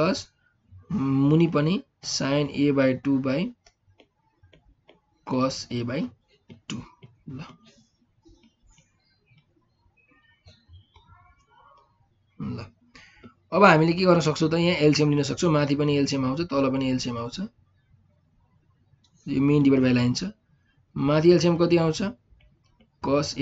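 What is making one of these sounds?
A young man speaks calmly and steadily into a close microphone, with short pauses.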